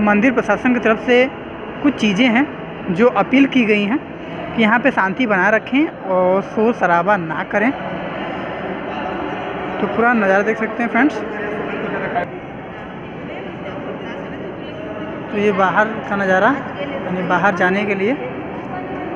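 A man chants melodically through a loudspeaker, echoing in a large hall.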